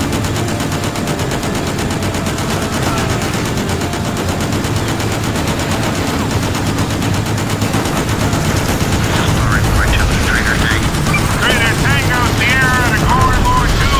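A machine gun fires in rapid bursts.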